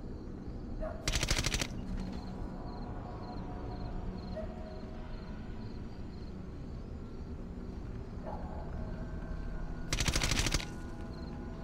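A rifle fires short rapid bursts.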